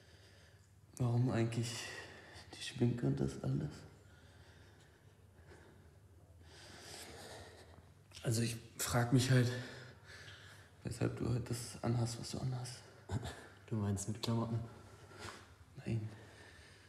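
A young man speaks quietly and calmly, close by.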